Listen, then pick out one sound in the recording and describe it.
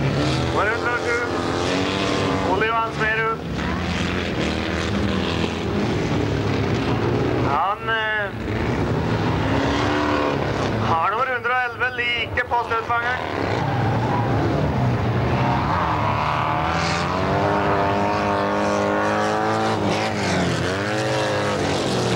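Racing car engines roar and rev loudly outdoors.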